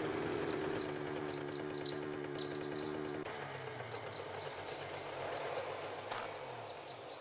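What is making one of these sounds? A motorbike engine runs with a low rumble, then slows and dies away.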